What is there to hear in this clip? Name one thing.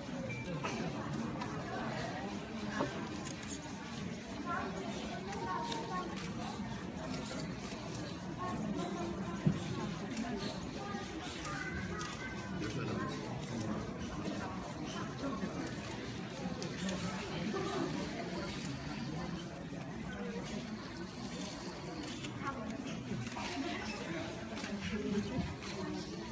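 Men and women chat and murmur nearby.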